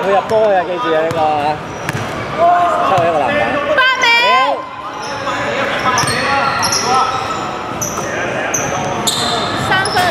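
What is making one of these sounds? Young men shout and call out in a large echoing gym.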